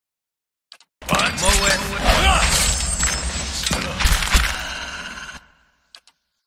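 Magic spells burst and crackle in a game battle.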